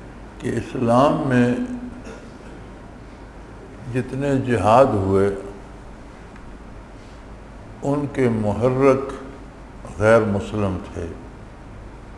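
An elderly man speaks slowly and solemnly into a microphone, with long pauses between phrases.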